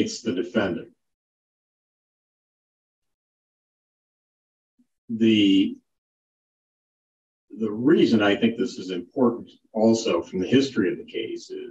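An older man speaks calmly through a microphone in an online call, with pauses.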